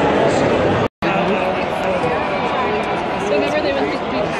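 A large stadium crowd roars.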